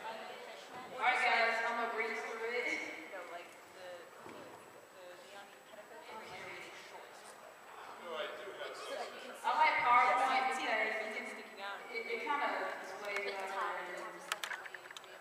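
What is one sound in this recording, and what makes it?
A young woman speaks with animation into a microphone, heard through a loudspeaker in a large echoing room.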